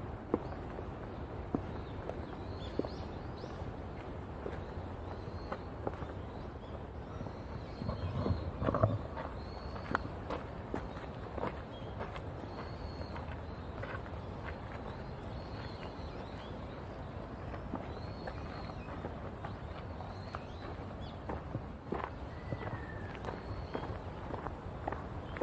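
Footsteps crunch and scuff on a gravel and stone path.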